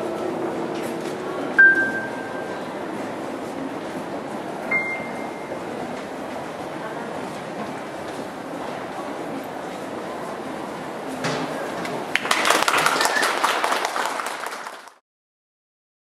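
A drummer taps a box drum.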